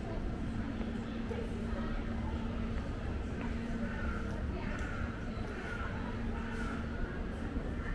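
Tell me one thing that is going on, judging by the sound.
Footsteps tap on stone paving nearby.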